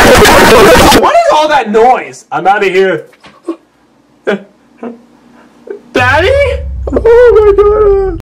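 A man speaks with animation in a high, cartoonish puppet voice, close by.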